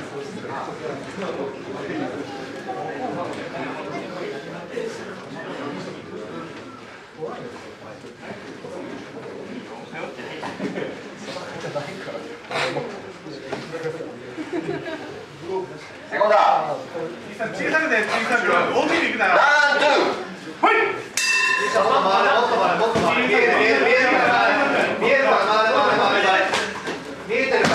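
Several men talk nearby in a room.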